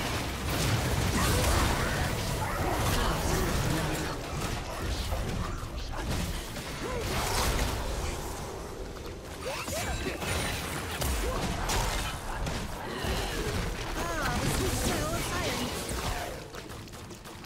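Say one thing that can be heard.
Game spells whoosh and crackle in quick bursts.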